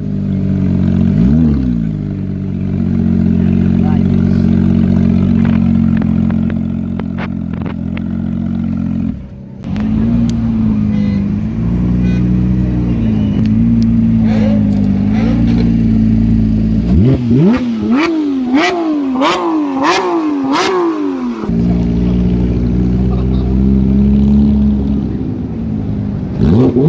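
A sports car engine idles with a deep, rumbling exhaust.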